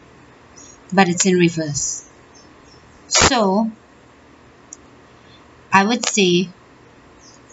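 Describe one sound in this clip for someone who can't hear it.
A woman speaks close by in short, calm phrases.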